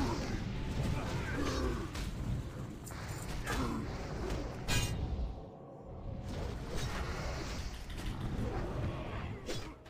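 Game combat sounds clash and thud.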